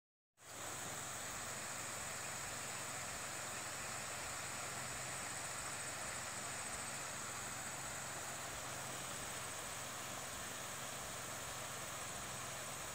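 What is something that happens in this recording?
Sprinklers hiss steadily as they spray water outdoors.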